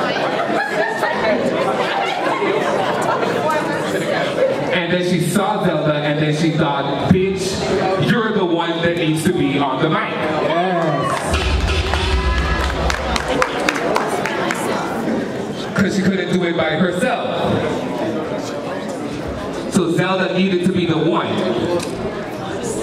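A young man speaks rhythmically into a microphone, heard through loudspeakers.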